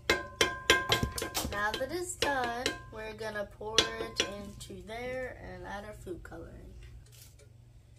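A metal spoon clinks against a pot.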